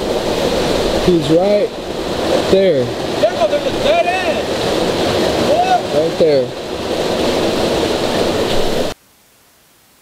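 Water trickles and splashes over rocks into a pool.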